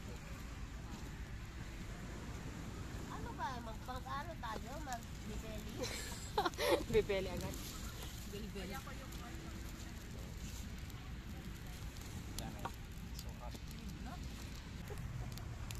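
Sticks clatter as they are pushed into a fire.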